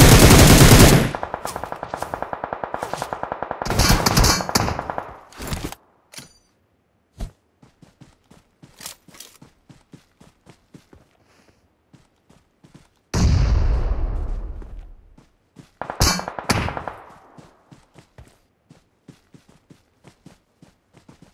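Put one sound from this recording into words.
Footsteps run through grass.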